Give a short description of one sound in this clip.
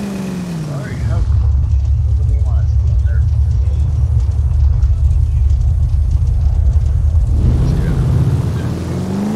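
Tyres screech on the road during sharp turns.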